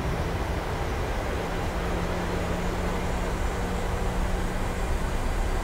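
Jet engines roar steadily as an airliner rolls down a runway.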